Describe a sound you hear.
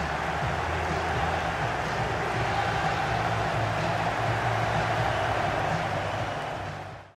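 A large stadium crowd roars and chants steadily, then fades out.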